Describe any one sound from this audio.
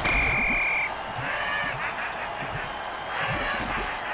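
A heavy body crashes to the ground in a tackle.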